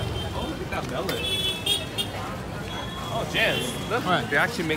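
Vehicle horns beep briefly.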